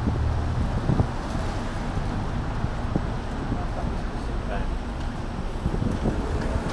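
Traffic hisses by on a wet road.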